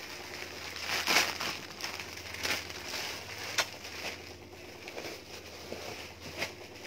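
Fabric rustles and flaps as clothing is shaken and handled.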